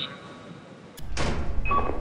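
A heavy metal door opens with a thud.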